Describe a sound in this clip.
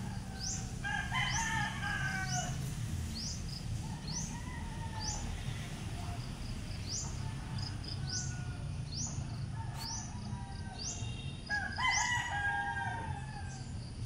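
A young goat bleats nearby.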